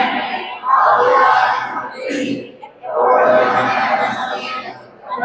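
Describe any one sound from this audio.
A group of children sings a slow hymn together in a large echoing hall.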